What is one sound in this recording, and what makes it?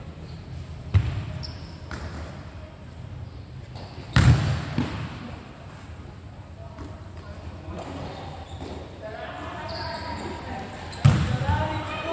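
A ball is kicked hard with sharp thuds in an echoing hall.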